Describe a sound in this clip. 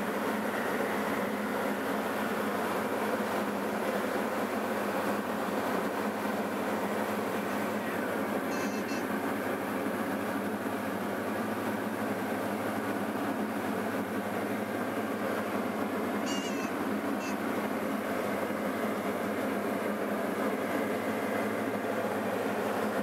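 A light propeller plane's engine drones steadily in flight, heard from inside the cabin.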